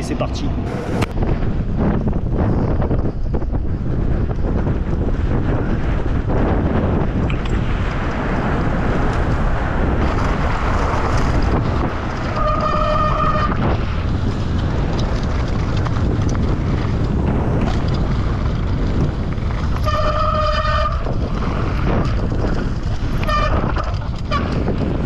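Wind rushes loudly against the microphone.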